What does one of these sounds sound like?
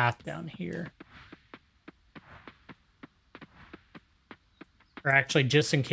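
Footsteps tap quickly and evenly on soft ground.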